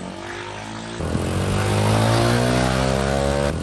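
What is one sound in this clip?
A motorcycle engine runs as the bike rides off.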